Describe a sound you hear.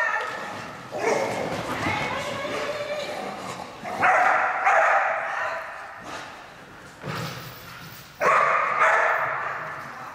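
A woman calls out commands to a dog in a large echoing hall.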